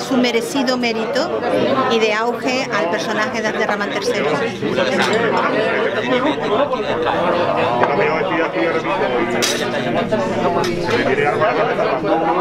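Many people chatter in the background of a busy room.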